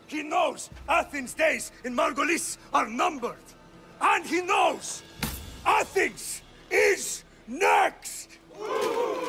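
A middle-aged man speaks forcefully and shouts.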